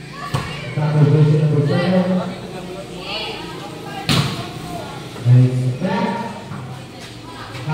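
Young women cheer and shout nearby.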